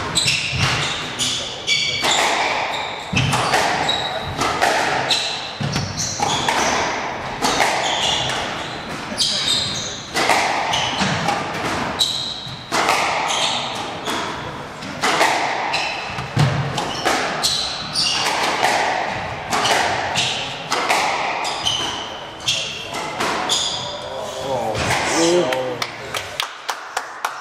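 Sports shoes squeak on a wooden floor.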